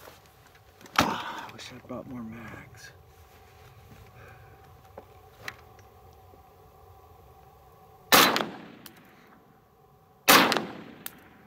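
A rifle fires sharp, loud shots outdoors.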